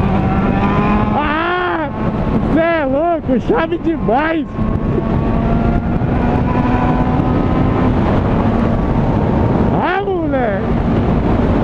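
A motorcycle engine revs up and drops sharply several times.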